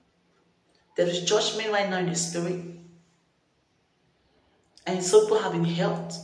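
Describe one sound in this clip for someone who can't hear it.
A woman speaks calmly and close up, with pauses.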